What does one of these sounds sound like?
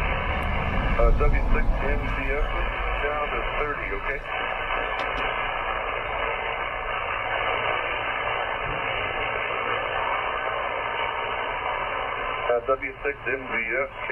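A man's voice comes faintly through a radio loudspeaker amid the static.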